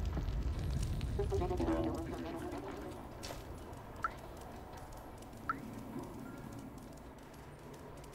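A cat's paws patter softly on the ground.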